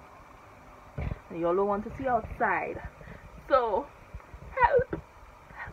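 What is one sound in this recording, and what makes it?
A young woman speaks close to the microphone with animation, her voice rising in pitch.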